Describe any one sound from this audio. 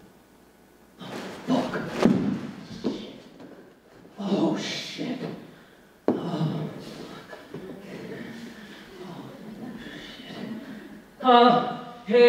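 A young woman gasps and breathes harshly into a microphone.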